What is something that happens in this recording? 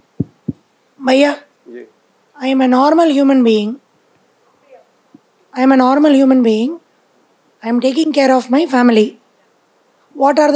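A woman speaks loudly and clearly to a group, close by, in a room with some echo.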